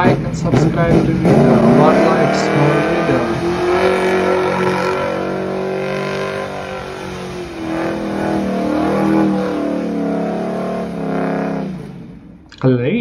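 Tyres squeal as a car spins on pavement.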